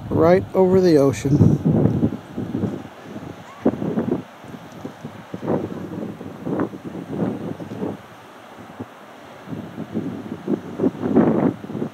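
Waves wash onto a beach.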